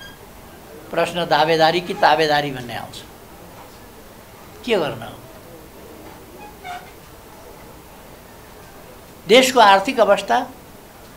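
An elderly man speaks calmly and deliberately into microphones, with pauses between phrases.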